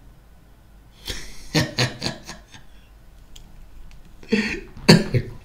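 A man laughs.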